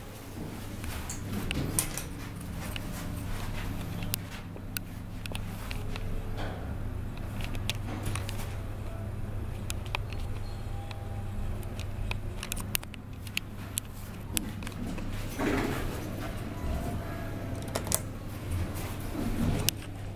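An elevator hums low and steady as it travels.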